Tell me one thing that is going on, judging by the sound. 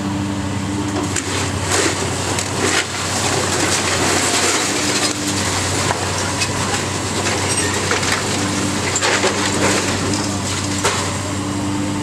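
Masonry and debris crash and clatter as a wall is torn down.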